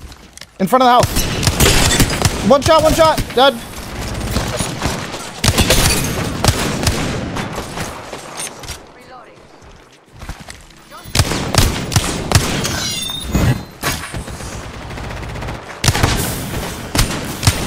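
Rapid gunfire bursts and crackles.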